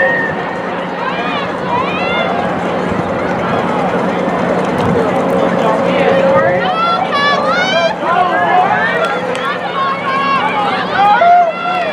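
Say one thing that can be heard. A crowd of teenage girls chatters and calls out nearby, outdoors.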